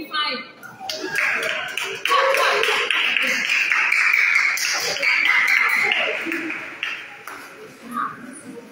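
A group of people cheers and shouts.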